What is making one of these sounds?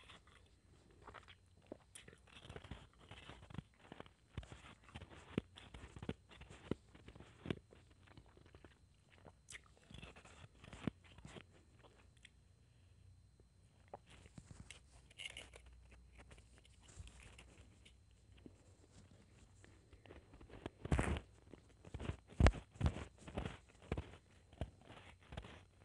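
A woman crunches and chews ice close to the microphone.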